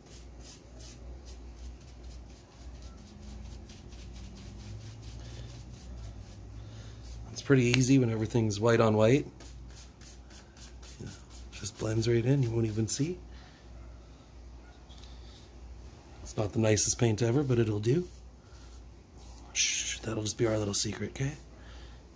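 A paintbrush brushes softly along wooden trim.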